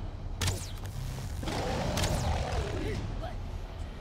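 A magical blast whooshes and crackles.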